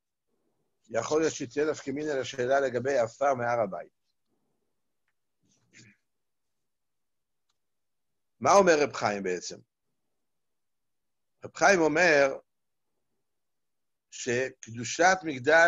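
An elderly man speaks calmly over an online call, in short bursts with pauses.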